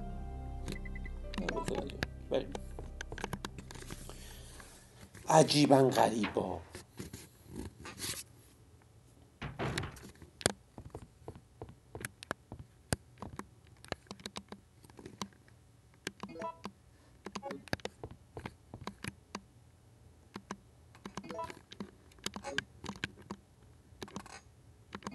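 Short menu beeps and clicks sound.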